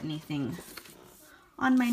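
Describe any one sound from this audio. Paper slides across a table.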